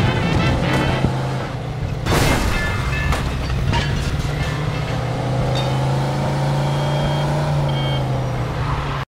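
A car engine hums steadily as the car drives along a road.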